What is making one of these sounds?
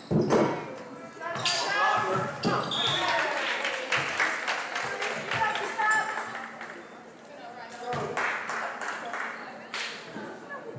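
Young women on a team shout and cheer.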